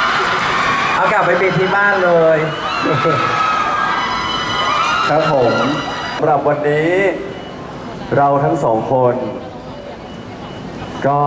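A young man speaks with animation through a microphone over loudspeakers.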